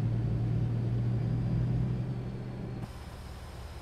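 A truck engine idles with a low, steady rumble inside the cab.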